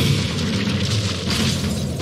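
A frosty magic spell crackles and whooshes.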